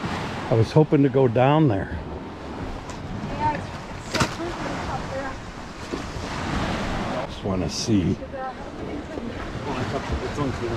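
Small waves lap softly against the rocks.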